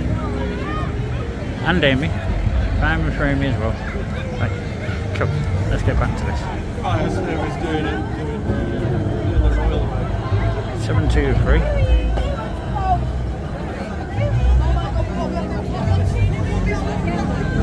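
A tram rolls slowly past on rails with a low hum.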